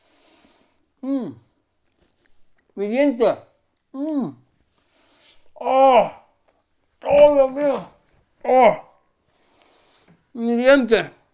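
A man speaks close by in short, expressive bursts with animated, rising and falling pitch.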